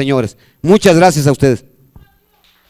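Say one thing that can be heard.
A middle-aged man speaks loudly into a microphone.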